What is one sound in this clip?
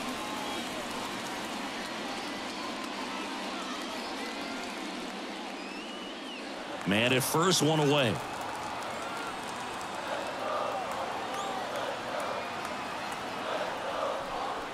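A large crowd murmurs and chatters in a stadium.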